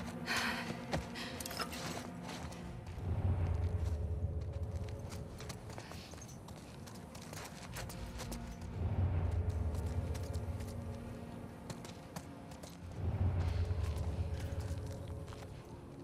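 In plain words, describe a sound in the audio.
Footsteps shuffle quietly on a hard floor.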